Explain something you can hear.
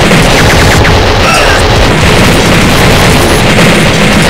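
Bullets smash into things with sharp crashes and clatter.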